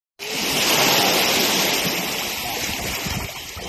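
Water splashes and churns as a boat pushes off through shallow water.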